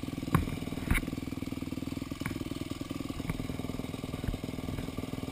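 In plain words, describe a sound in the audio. A dirt bike's suspension knocks and rattles over bumps on a trail.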